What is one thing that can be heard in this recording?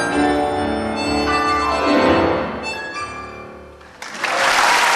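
A piano plays in a large hall.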